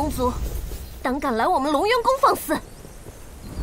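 A young woman speaks sharply and close.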